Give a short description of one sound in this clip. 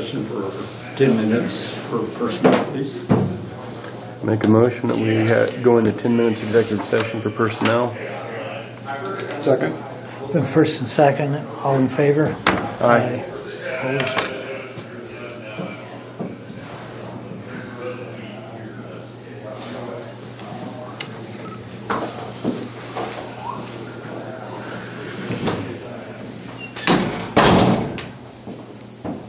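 Middle-aged men talk calmly.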